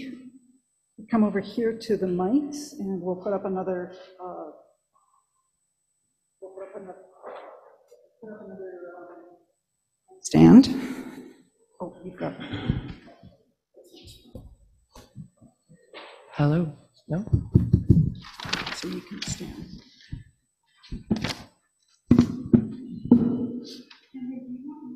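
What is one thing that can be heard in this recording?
An older woman speaks calmly through a microphone in an echoing hall.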